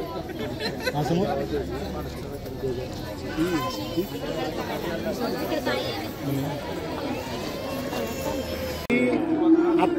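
A crowd of women chatter and call out close by.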